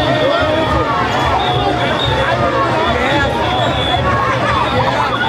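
A large crowd of people chatters and cheers outdoors.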